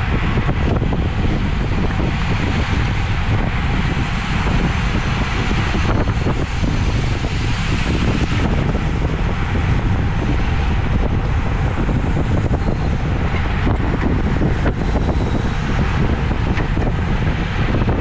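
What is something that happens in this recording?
Bicycle tyres hum steadily on the road.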